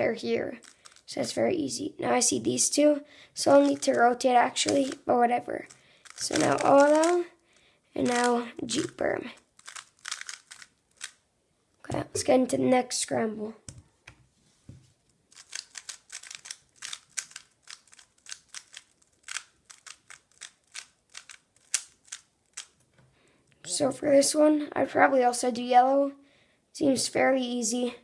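A plastic puzzle cube clicks and clacks as it is turned quickly.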